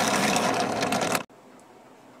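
A drill press bores loudly into wood.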